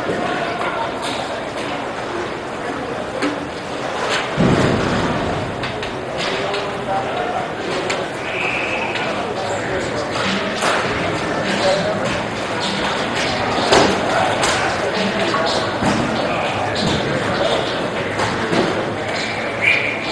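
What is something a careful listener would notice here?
Hockey sticks and gloves knock together.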